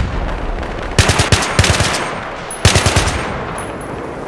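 A rifle fires several sharp, loud shots in quick bursts.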